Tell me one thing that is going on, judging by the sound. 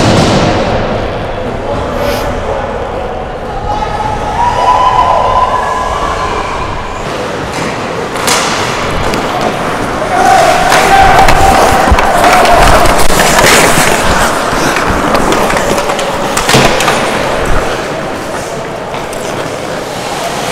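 Players shout and call out to each other across an echoing rink.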